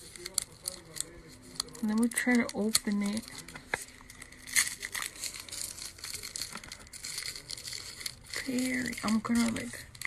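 Paper wrapping crinkles between fingers.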